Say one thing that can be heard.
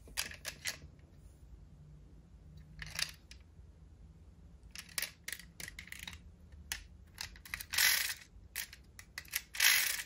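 Fingers tap and click against a small metal toy car.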